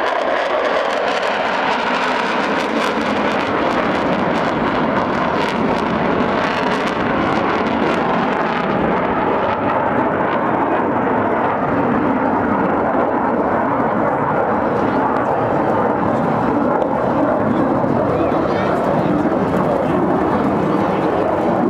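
Jet fighters roar loudly overhead.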